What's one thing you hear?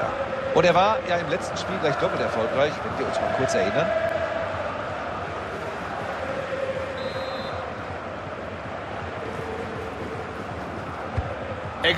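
A large stadium crowd roars and chants steadily in the background.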